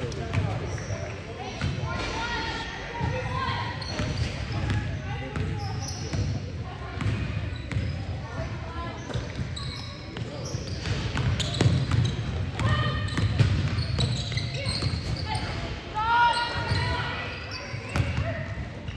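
Young women call out and shout encouragement nearby.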